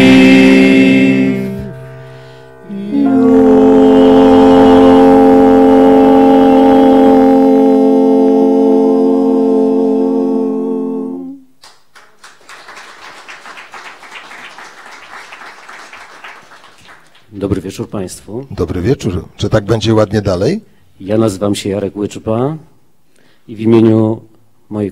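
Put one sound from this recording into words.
A group of men sings together in close harmony through microphones.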